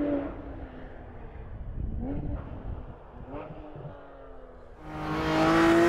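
A sports car engine echoes far off through the hills, rising and falling as it shifts gears.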